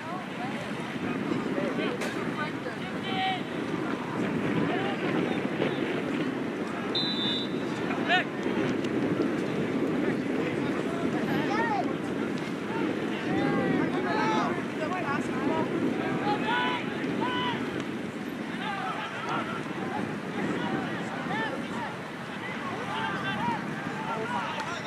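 A crowd of spectators and players chatter and shout outdoors.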